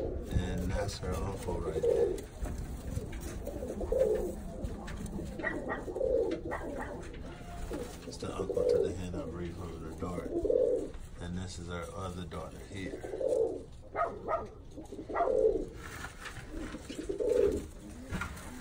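Pigeons coo with low, repeated rolling calls close by.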